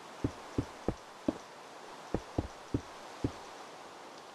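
Footsteps thud on stone at a steady walking pace.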